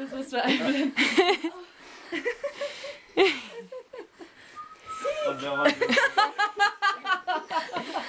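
An elderly woman laughs close by.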